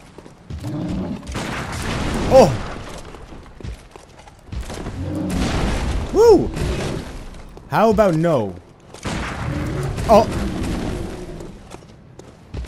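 A large beast snarls and roars close by.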